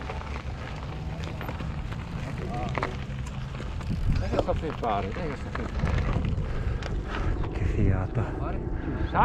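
Bicycle tyres crunch and rattle over gravel.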